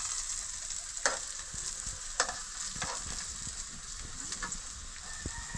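A metal utensil clinks against a pan.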